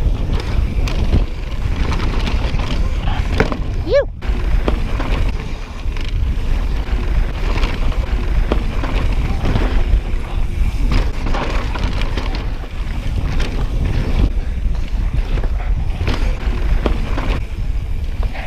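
Bicycle tyres rumble and crunch over a rough dirt trail.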